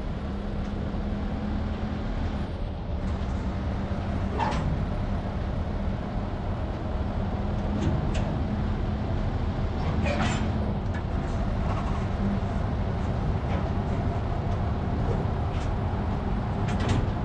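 A heavy truck engine drones steadily.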